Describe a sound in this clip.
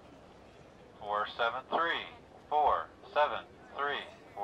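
A man announces loudly through a loudspeaker microphone, outdoors.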